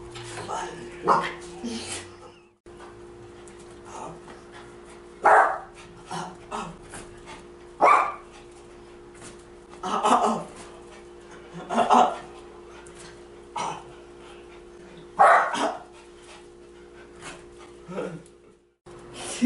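A woman speaks commands to a dog in short bursts, close by.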